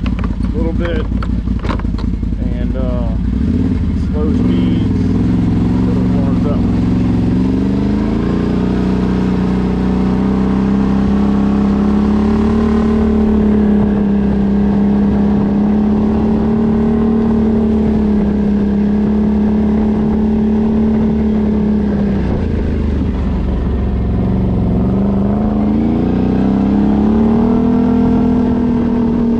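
An ATV engine idles, then revs up and down as the vehicle drives off.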